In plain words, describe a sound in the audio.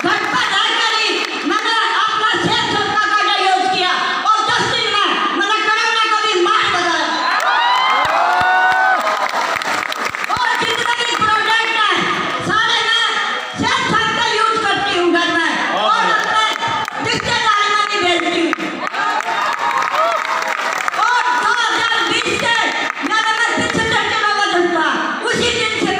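A group of women sing together loudly in a large hall.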